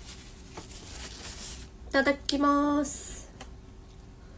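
A young woman slurps noodles up close.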